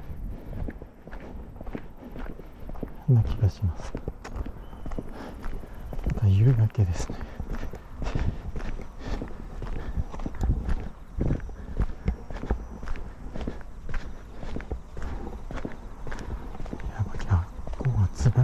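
Footsteps tap steadily on a paved path.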